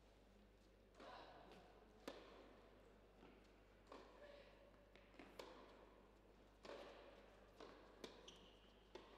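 A racket strikes a tennis ball with sharp pops, back and forth in a rally.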